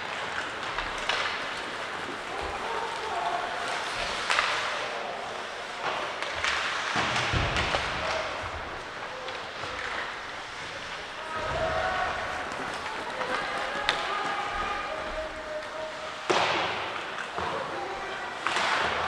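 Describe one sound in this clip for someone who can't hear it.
Ice skates scrape and hiss across the ice in a large echoing rink.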